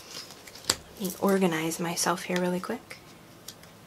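A young person speaks calmly and close by.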